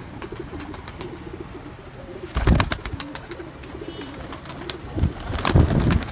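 Pigeons coo softly and steadily close by.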